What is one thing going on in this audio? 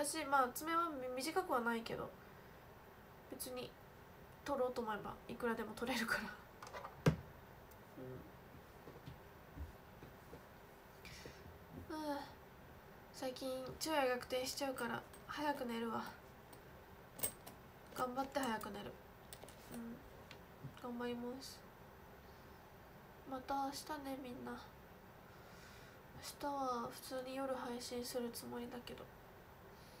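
A young woman speaks calmly close to a microphone, in short phrases with pauses.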